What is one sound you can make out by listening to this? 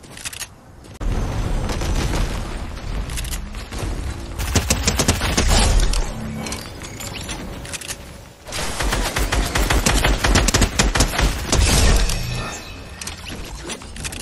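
A submachine gun fires rapid bursts of shots.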